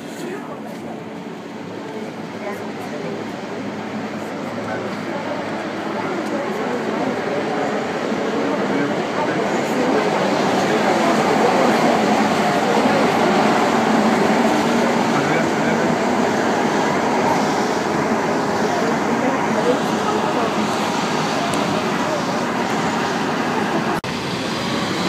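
A subway train rumbles and rattles along the tracks.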